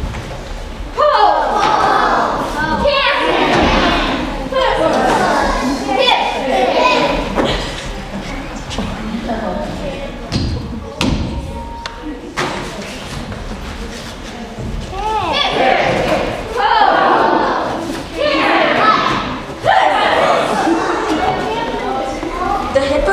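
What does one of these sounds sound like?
Children speak loudly and with expression in a large echoing hall.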